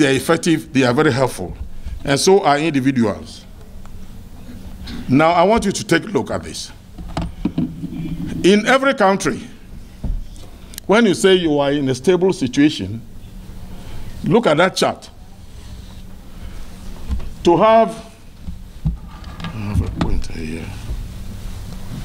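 A man speaks slowly and formally into a microphone, heard through a loudspeaker in a large echoing hall.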